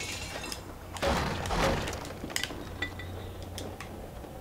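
Wooden crates smash and splinter.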